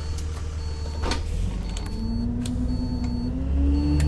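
Bus doors thud shut.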